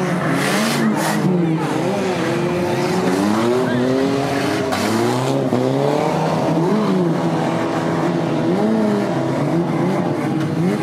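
A large crowd cheers in the distance.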